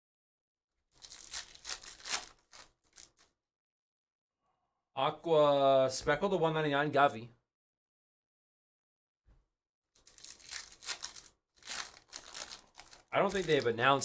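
Foil card wrappers crinkle and rustle as they are torn open.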